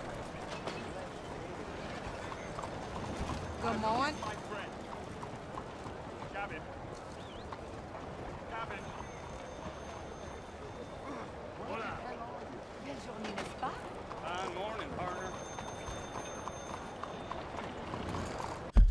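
Horse hooves clop on cobblestones.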